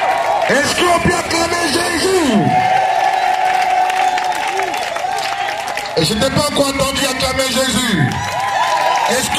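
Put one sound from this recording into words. A group of people sings together outdoors.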